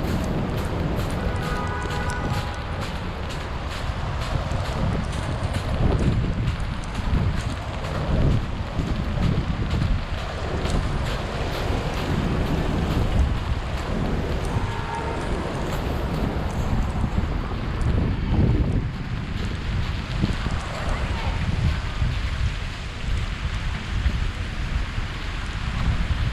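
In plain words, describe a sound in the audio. Footsteps crunch steadily through snow and slush.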